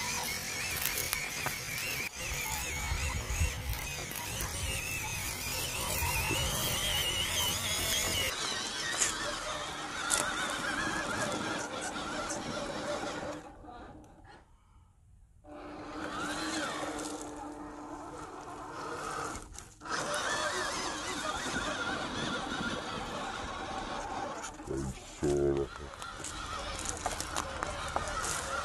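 A small electric motor whines as a toy truck crawls.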